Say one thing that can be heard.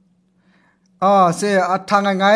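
A young man speaks close into a microphone, with animation.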